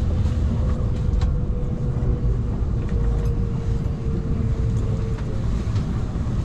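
A high whine sounds steadily, then stops.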